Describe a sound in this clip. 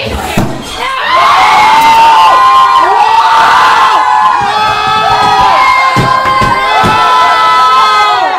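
A young man shouts loudly with excitement.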